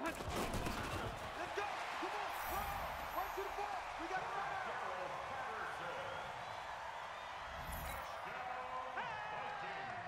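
A stadium crowd cheers loudly.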